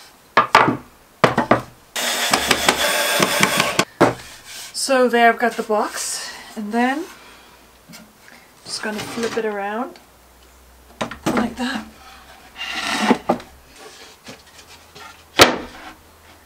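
Wooden boards knock and clatter.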